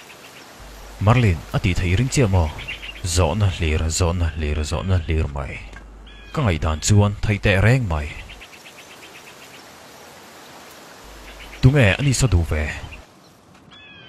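A man speaks firmly and calmly, close by.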